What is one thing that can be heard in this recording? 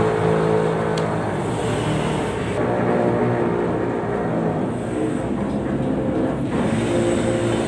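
A ship's engine drones steadily nearby.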